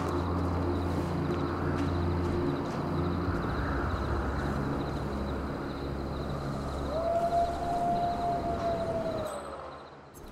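Footsteps tap on a stone path.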